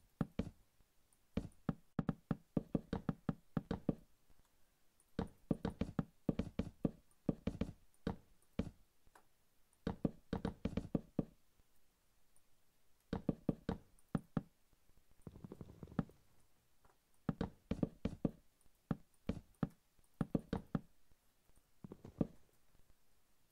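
Wooden blocks knock softly as they are placed one after another in quick bursts.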